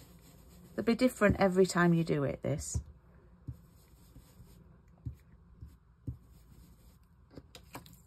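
A foam ink tool dabs softly and repeatedly on paper.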